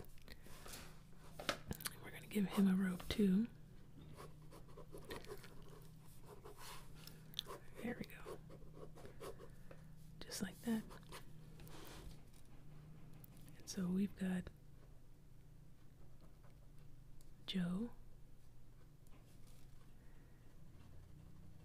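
A pen scratches and scrapes across paper.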